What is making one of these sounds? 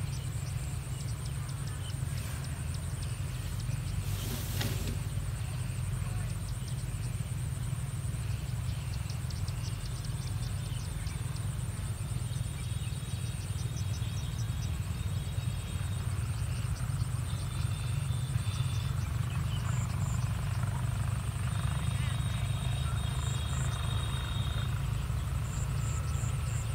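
Wind blows steadily across open fields outdoors.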